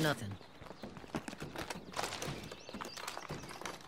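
Objects rattle and clatter as a container is rummaged through.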